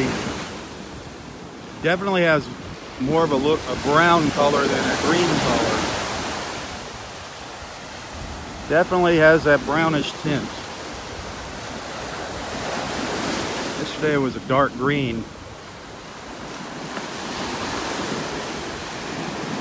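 Waves break and wash onto the shore in steady, rolling surges.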